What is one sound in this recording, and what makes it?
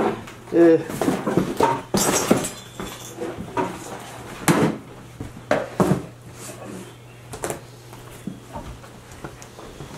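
Cardboard boxes and household items thump and rustle as they are moved.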